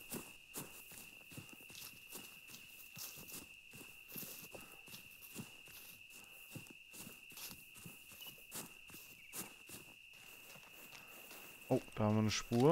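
Footsteps crunch steadily along a path.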